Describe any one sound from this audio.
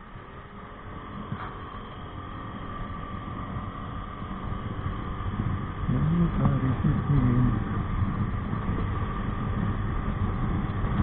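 Wind rushes past the rider, getting louder as speed builds.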